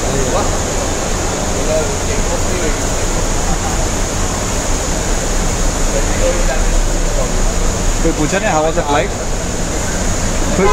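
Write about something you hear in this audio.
A busy crowd murmurs in a large echoing hall.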